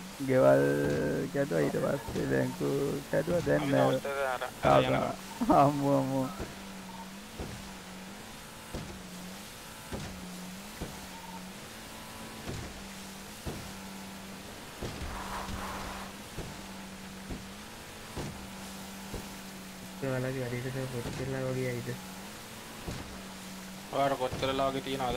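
Water sprays and splashes behind a speeding boat.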